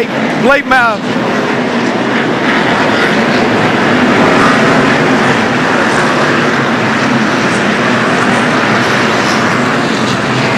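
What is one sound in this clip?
A race car engine roars loudly and steadily.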